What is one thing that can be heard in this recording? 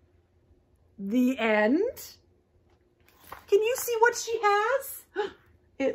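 A young woman reads aloud expressively, close by.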